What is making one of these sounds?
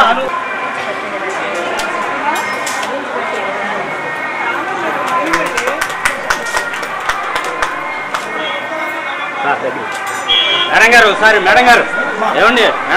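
A crowd of men and women chatters and laughs close by.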